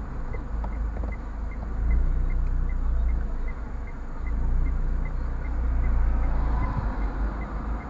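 Cars drive past on the road outside.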